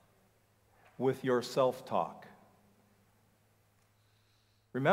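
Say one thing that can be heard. A middle-aged man speaks calmly into a microphone, heard over a loudspeaker.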